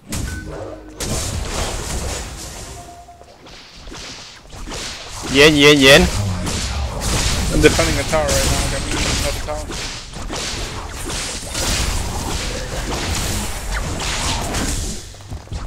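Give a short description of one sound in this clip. Magic blasts burst with loud bangs in a video game fight.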